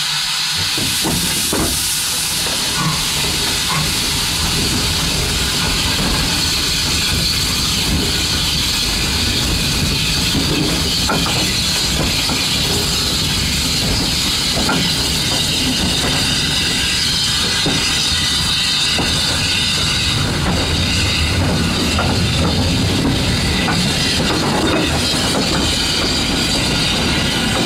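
Wagon wheels clatter and clank over rail joints.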